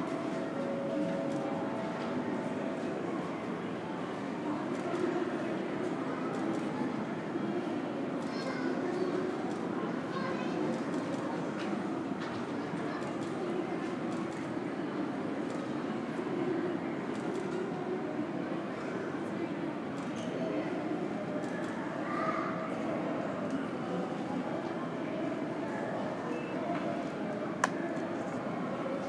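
A steady low hum fills a large, echoing hall.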